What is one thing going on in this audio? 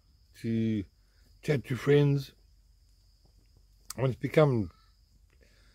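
An elderly man speaks close to the microphone in short, animated bursts.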